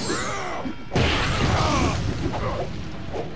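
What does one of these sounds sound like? Fire roars in a burst.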